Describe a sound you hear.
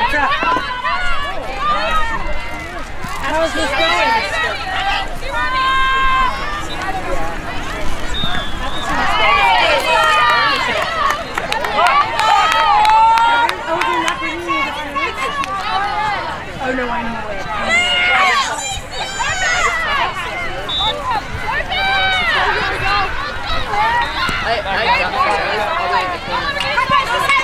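Young women shout and call to each other outdoors, some close and some farther off.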